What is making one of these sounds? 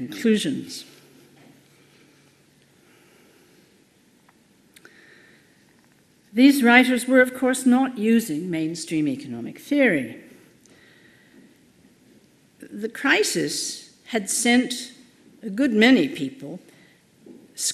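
An elderly woman speaks calmly through a microphone, reading out a lecture.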